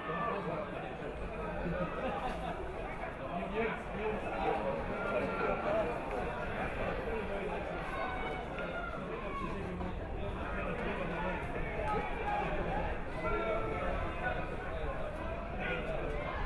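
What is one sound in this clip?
A crowd of spectators murmurs and calls out across an open outdoor ground.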